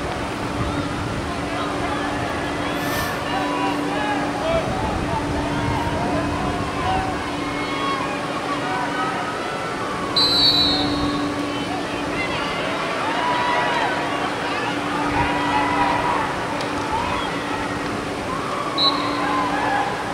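Lacrosse players shout to each other outdoors on an open field.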